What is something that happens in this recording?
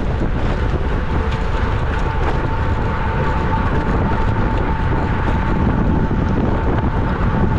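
Wind buffets loudly against a moving bicycle.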